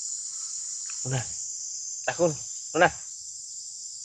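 A young monkey squeals in short, high cries.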